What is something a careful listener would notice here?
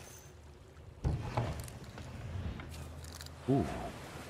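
A wooden chest lid thuds open.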